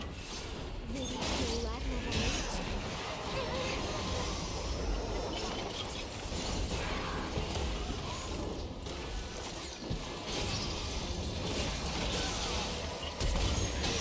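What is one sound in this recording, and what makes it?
Game weapon hits thud and clang in quick bursts.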